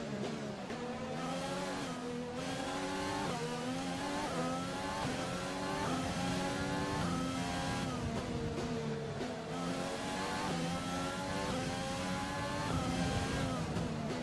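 A racing car engine screams, rising in pitch and dropping sharply with each gear change.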